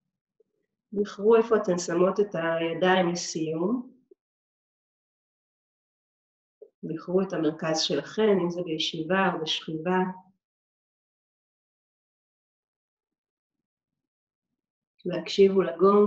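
A woman speaks calmly and slowly close by, with long pauses.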